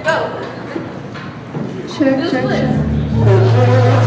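A young woman speaks into a microphone through loudspeakers.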